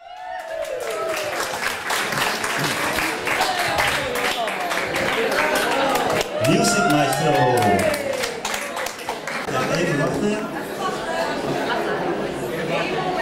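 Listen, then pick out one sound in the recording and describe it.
A crowd of men and women chatter and call out loudly in an echoing room.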